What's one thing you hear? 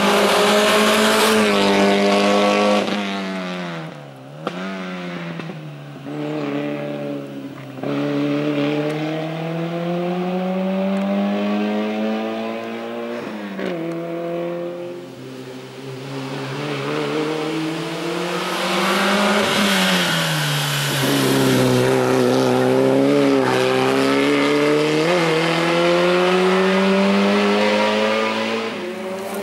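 A rally car engine revs hard and drops through gear changes.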